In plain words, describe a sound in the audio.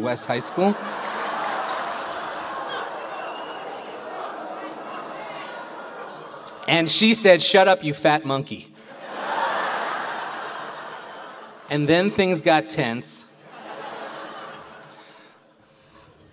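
A large audience laughs loudly in a hall.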